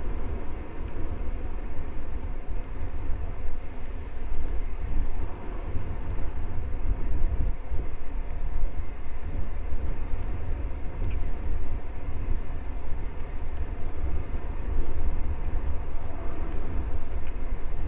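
Wind rumbles and buffets loudly, outdoors.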